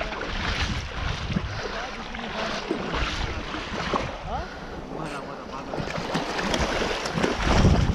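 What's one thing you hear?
Shallow water splashes as a fish is dragged through it.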